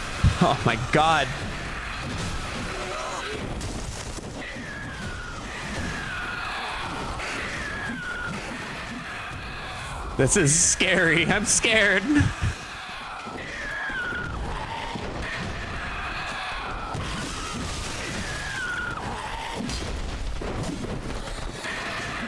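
A sword swings and strikes a creature.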